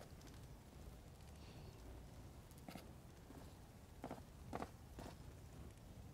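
A fire crackles in a brazier.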